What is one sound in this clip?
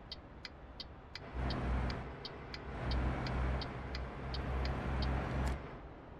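A truck's turn signal ticks steadily.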